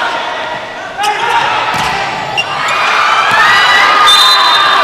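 A volleyball is spiked with a loud smack.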